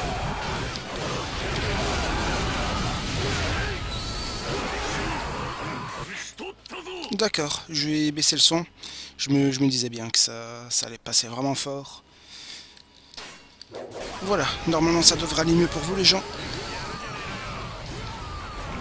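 Blades slash and clash rapidly amid bursts of battle noise.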